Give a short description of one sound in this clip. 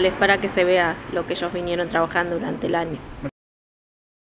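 A young woman speaks calmly into a microphone close by.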